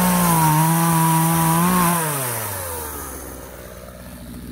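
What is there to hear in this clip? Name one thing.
A chainsaw runs at high speed, then winds down to idle.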